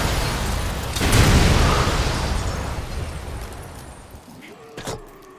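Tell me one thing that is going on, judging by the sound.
A big explosion booms and rumbles away.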